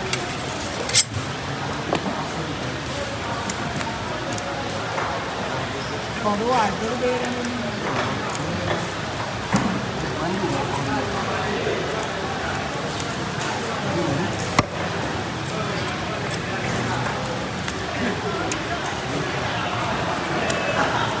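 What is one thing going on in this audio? A heavy cleaver chops onto a wooden block with sharp thuds.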